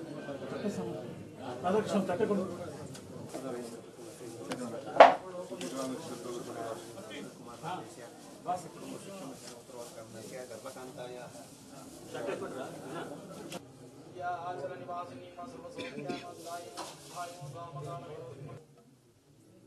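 Men and women talk together in a crowd close by.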